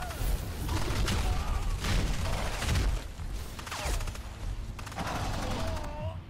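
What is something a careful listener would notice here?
A large creature stomps heavily across the ground.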